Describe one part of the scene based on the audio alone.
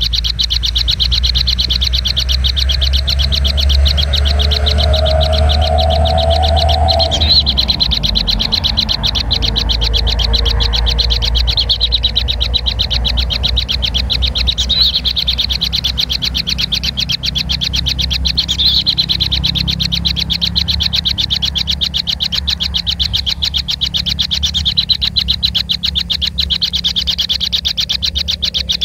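Kingfisher nestlings beg with rapid ticking calls.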